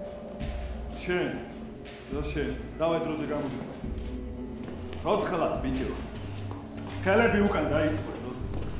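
A man speaks firmly nearby.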